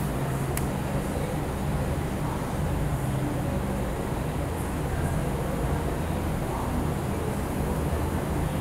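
Calculator keys click softly.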